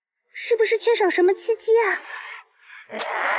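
A young woman speaks with alarm.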